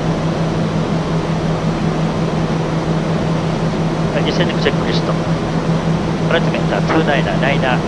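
An aircraft engine drones steadily with a loud, constant hum.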